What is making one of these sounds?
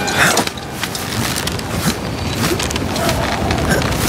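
Boots thump on wooden steps while climbing.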